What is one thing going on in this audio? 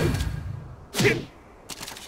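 A fiery blast bursts on impact.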